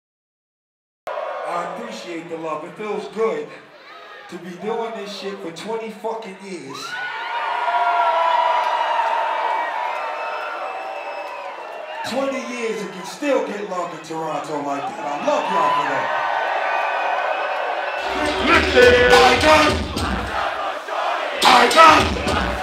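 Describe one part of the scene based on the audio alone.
A man raps loudly into a microphone over loudspeakers.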